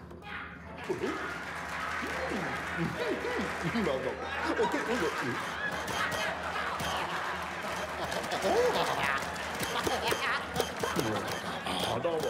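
A cartoon rabbit babbles and squeaks.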